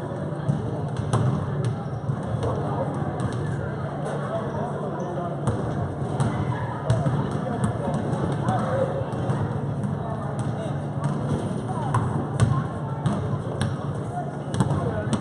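Players and onlookers chatter and call out across an echoing hall.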